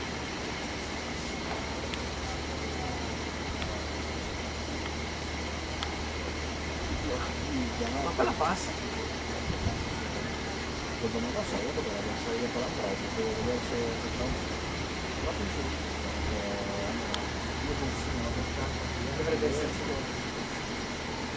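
An electric commuter train rolls slowly toward the listener.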